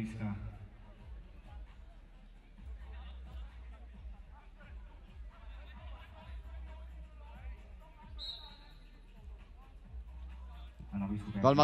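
Men call out to each other across an open outdoor field.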